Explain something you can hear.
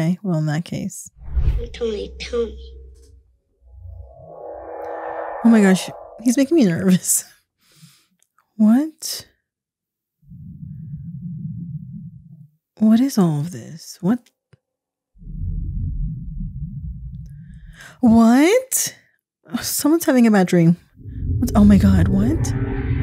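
A young woman speaks close to a microphone, reacting with animation.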